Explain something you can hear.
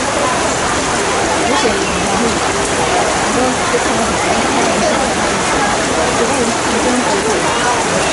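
Rain patters steadily on a canopy overhead.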